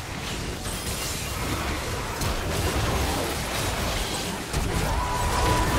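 Spell effects crackle and burst in a busy fight.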